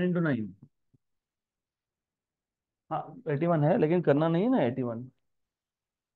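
A man explains calmly into a microphone, pausing between phrases.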